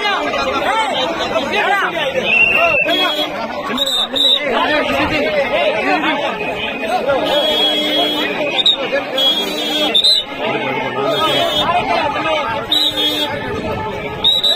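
A crowd of men shout and argue loudly outdoors, close by.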